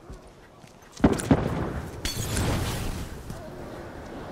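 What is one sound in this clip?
A fire bursts and crackles nearby.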